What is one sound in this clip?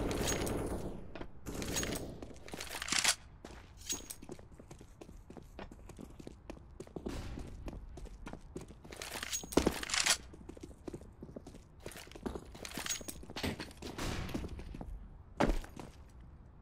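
A knife is drawn and put away with metallic clicks.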